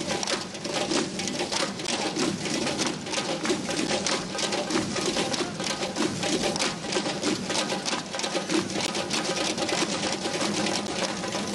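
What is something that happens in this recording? Many frame drums beat a fast, steady rhythm together outdoors.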